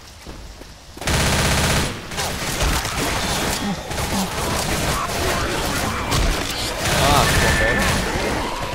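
A submachine gun fires rapid, loud bursts.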